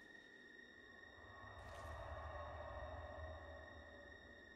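A magical burst whooshes and rumbles.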